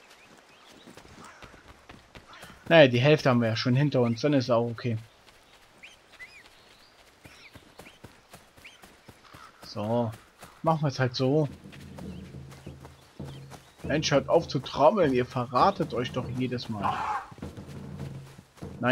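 Footsteps run over soft forest ground.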